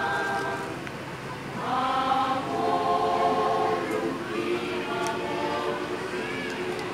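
A choir of women sings together with a lively, ringing sound.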